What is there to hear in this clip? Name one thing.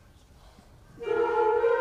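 A concert band begins to play.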